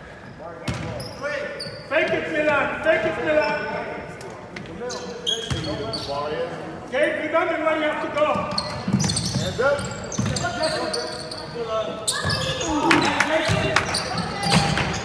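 Spectators close by talk and cheer loudly in an echoing gym.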